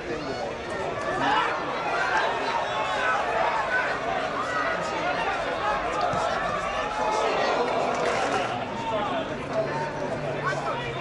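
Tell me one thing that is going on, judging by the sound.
A crowd of spectators cheers and chants loudly outdoors.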